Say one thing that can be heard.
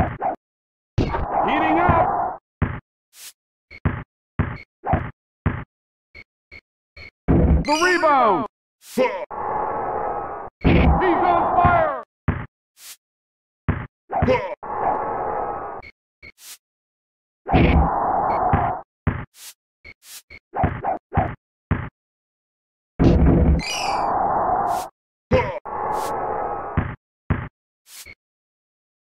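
A basketball bounces sharply on a court.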